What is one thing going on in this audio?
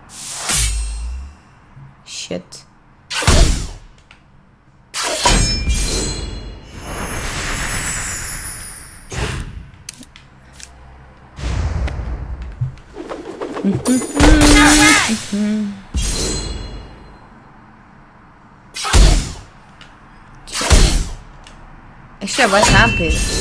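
A young woman talks into a microphone with animation.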